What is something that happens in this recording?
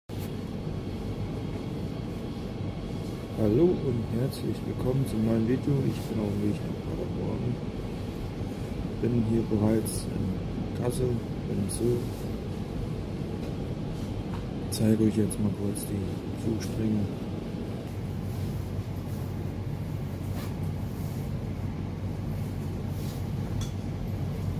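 A train rumbles steadily.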